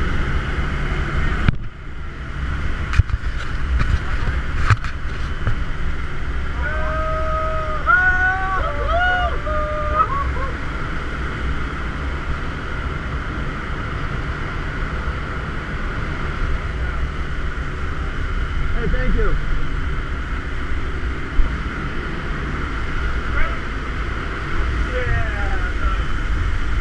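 A plane's engine roars steadily and loudly.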